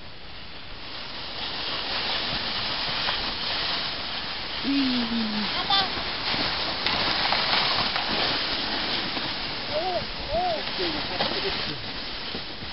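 A sled scrapes and hisses over snow.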